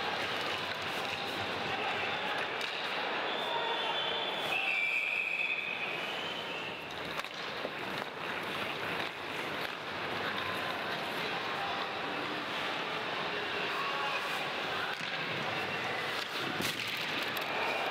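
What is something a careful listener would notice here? A large crowd roars and cheers in an echoing arena.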